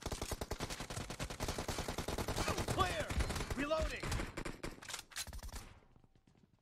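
An automatic rifle fires rapid bursts of gunfire.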